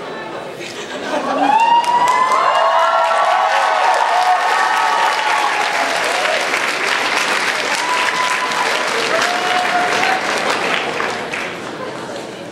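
An audience cheers and screams loudly in a large hall.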